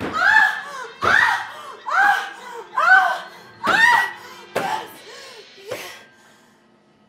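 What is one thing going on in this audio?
A woman laughs loudly in long, rising whoops.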